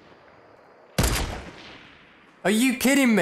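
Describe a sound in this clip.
A sniper rifle fires a single loud shot that echoes away.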